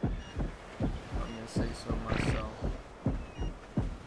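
A large beast growls nearby.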